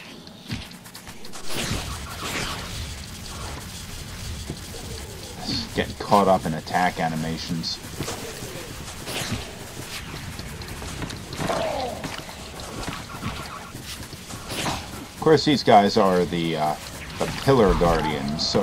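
Magical blasts whoosh and burst in quick bursts.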